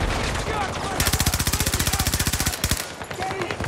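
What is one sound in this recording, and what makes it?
A rifle fires a rapid burst.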